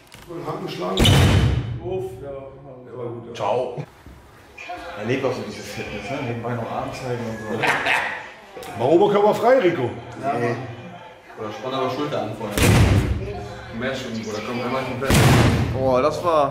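A fist thumps hard into a punching ball.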